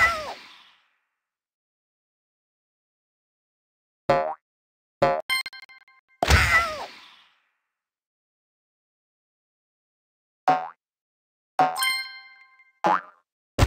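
Short bouncy game sound effects pop up every few seconds.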